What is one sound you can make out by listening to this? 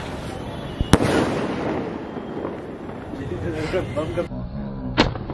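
Fireworks crackle and fizzle in the air.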